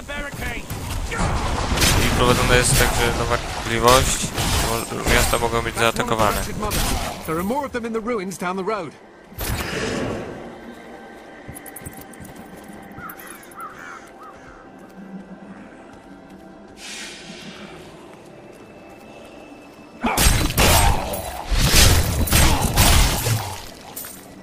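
Magic blasts and weapon blows clash loudly in a fast fight.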